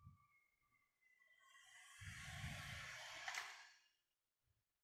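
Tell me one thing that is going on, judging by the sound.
Thread rasps as it is pulled tight through boot leather.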